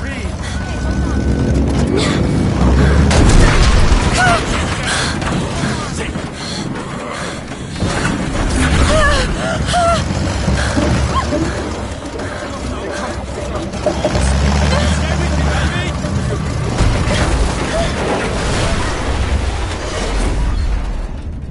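Adult men and women cry out in panic nearby.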